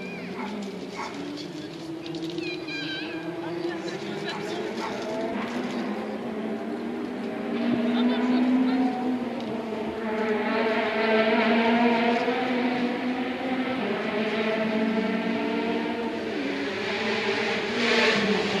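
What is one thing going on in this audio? A crowd of men and women chatters outdoors at a distance.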